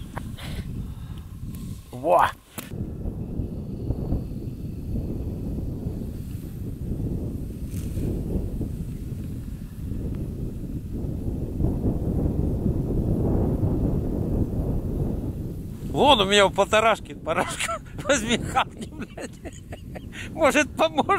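Wind blows outdoors across open snow.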